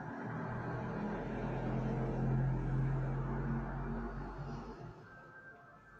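A middle-aged woman hums a long, low, steady tone close by, which then fades out.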